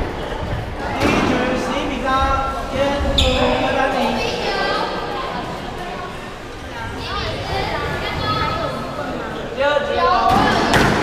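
Men talk with each other in an echoing court.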